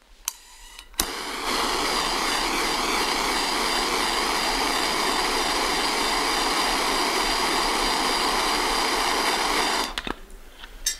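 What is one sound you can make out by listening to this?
A gas torch hisses and roars steadily.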